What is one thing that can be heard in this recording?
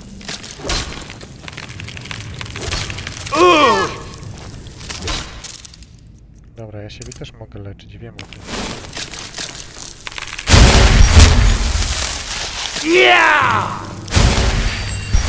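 A magic spell hums and crackles softly.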